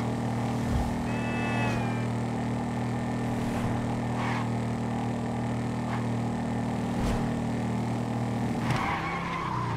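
A cruiser motorcycle engine drones steadily at speed.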